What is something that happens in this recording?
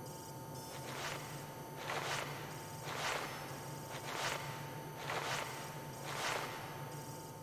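Footsteps ring out on a hard metal floor.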